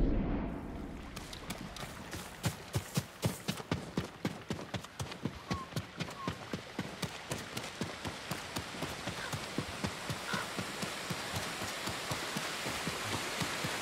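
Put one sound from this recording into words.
Footsteps run quickly over dirt and stone steps.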